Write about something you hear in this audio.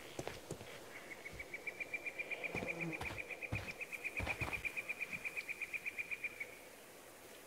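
Footsteps crunch on gravel at a steady pace.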